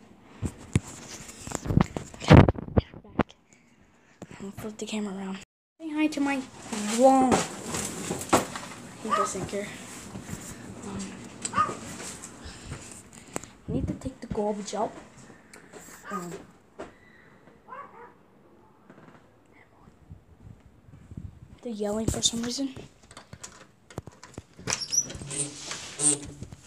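Knocks and rustles sound as a phone is handled up close.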